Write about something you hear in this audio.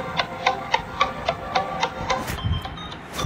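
A game plays short bright coin chimes at a steady pace.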